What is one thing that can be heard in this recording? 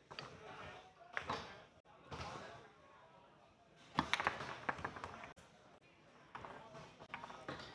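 A foosball clacks and rattles against the rods and walls of a table.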